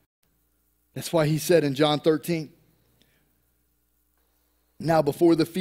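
A middle-aged man speaks calmly into a microphone over a loudspeaker.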